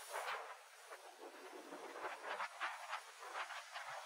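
Waves splash against concrete blocks.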